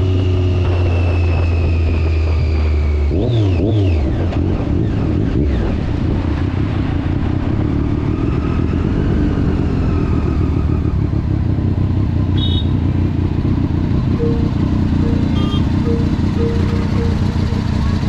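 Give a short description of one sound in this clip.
A motorcycle engine rumbles up close while riding.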